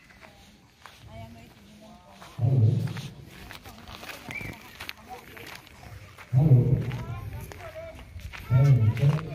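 Men and women talk casually nearby, outdoors.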